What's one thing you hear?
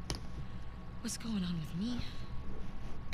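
A second young woman answers with a worried, rising voice.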